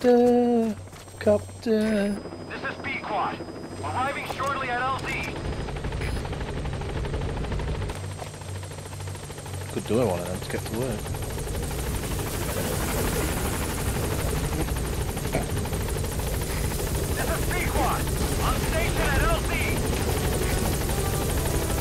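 A helicopter's rotors thud overhead and grow louder as it comes closer.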